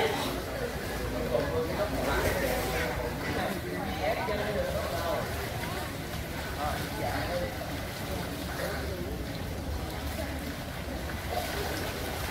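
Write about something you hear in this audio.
Children shout and chatter nearby in an echoing pool.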